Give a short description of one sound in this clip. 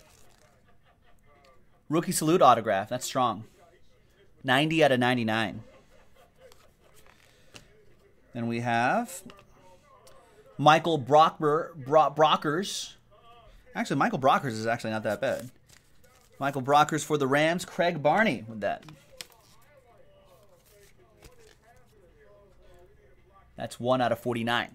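Plastic card sleeves rustle and crinkle in hands.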